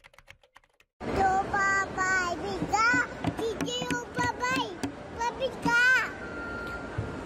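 A toddler girl talks with animation up close.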